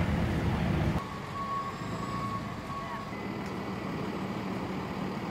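A truck engine idles nearby.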